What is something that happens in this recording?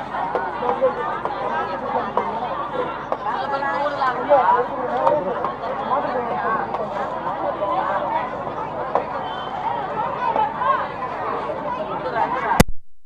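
A crowd of men and women chatter loudly all around.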